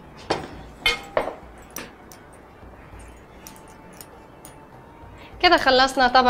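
A young woman speaks brightly into a microphone.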